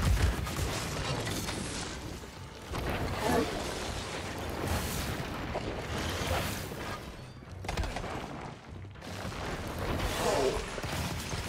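Blasts boom and crackle with heavy rumbling.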